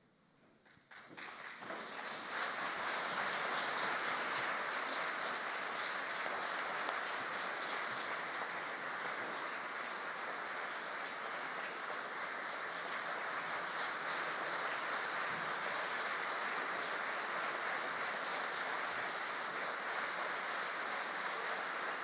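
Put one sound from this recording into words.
A large audience applauds steadily.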